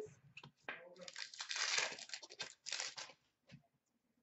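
Trading cards rustle and slide as they are handled.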